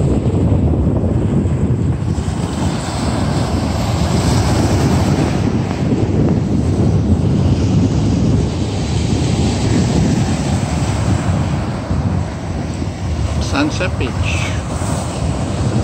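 Waves break and wash over a rocky shore.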